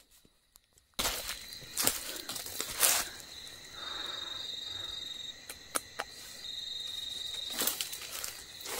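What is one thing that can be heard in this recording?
Leaves and twigs rustle as a hand moves through plants.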